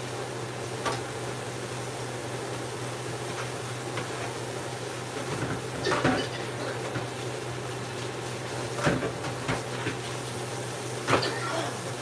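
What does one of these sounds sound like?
Dishes clink and clatter in a sink.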